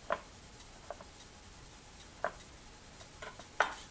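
A knife cuts through an onion onto a wooden cutting board.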